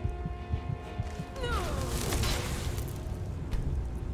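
A fire spell roars and crackles.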